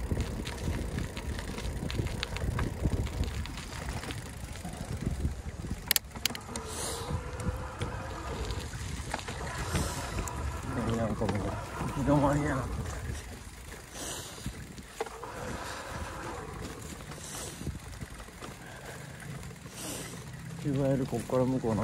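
Tyres roll over gravel and dry grass.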